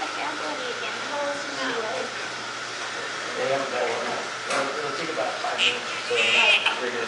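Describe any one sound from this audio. Women talk quietly nearby.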